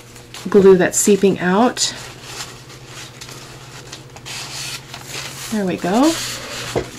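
Paper and tissue rustle softly under hands.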